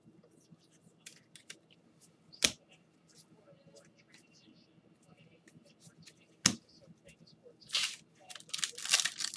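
Trading cards rustle and tap as they are handled.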